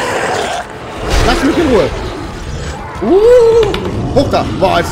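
A monster snarls and screeches as it attacks.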